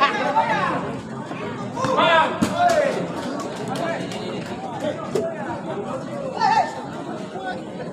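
Players shout to each other on the pitch.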